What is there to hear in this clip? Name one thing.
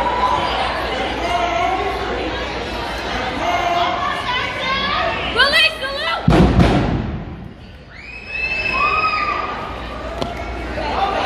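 Young women shout a chant.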